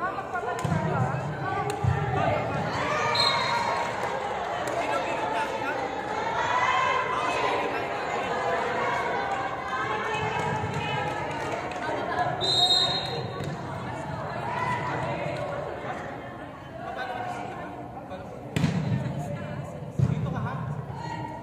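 Women chatter and call out across a large echoing hall.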